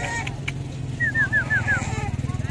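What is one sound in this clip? Puppies whimper and squeal close by.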